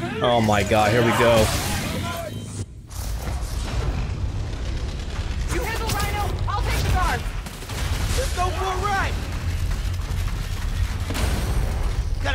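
Punches, thuds and an explosion boom in a fight.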